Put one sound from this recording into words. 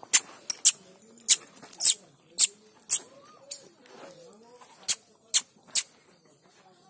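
A hand pats a cow's neck.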